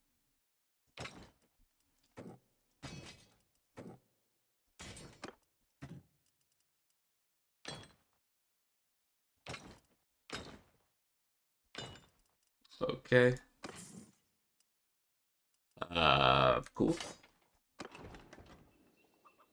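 Short soft clicks sound now and then as menu items are selected.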